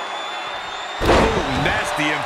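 A body slams hard onto a wrestling ring mat with a heavy thud.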